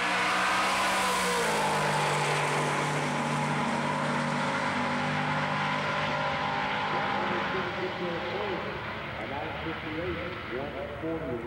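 A loud engine roars as a hot rod races past and fades into the distance.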